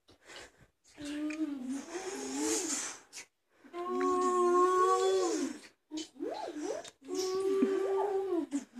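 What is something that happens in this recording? A child sings loudly close by.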